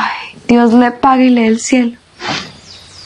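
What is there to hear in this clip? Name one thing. A young woman speaks in a tearful, strained voice close by.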